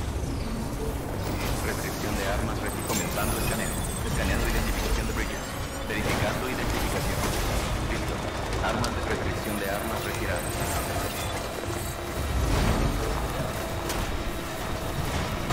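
Tyres crunch and bump over rough ground.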